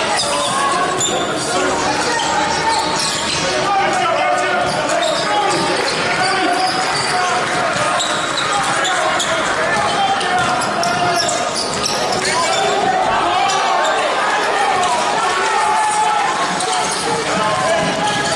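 Spectators chatter and call out in an echoing hall.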